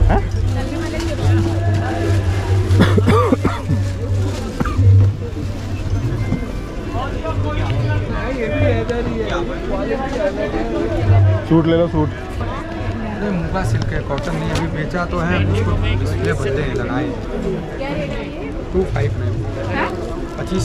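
A crowd of people chatter nearby outdoors.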